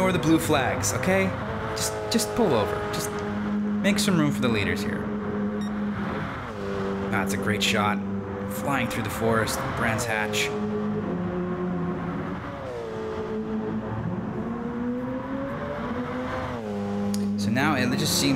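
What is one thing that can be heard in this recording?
A racing car engine roars at high revs, rising and falling with gear changes.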